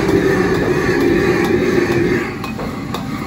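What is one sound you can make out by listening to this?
A gas burner roars loudly under a wok.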